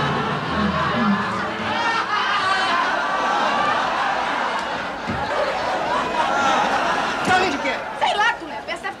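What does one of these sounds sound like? An audience laughs loudly in a large room.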